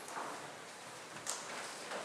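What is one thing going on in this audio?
Footsteps run across a wooden stage.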